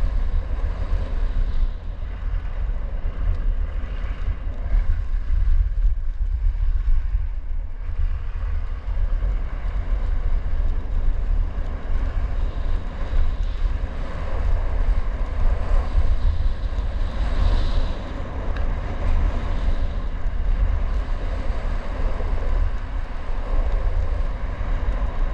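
Skis hiss and scrape over packed snow.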